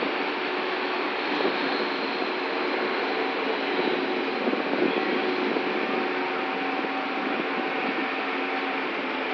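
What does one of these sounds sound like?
Rain patters steadily on wet ground.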